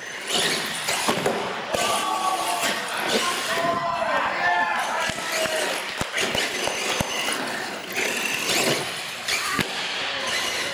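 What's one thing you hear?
A small electric motor whines, rising and falling as a toy truck speeds about.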